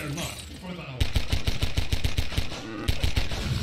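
Gunshots fire in rapid succession.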